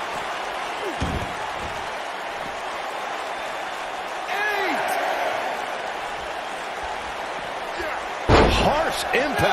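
A body slams heavily onto a wrestling mat.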